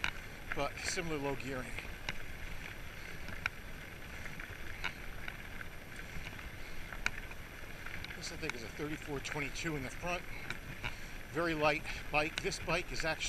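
A bicycle rattles over bumps in the path.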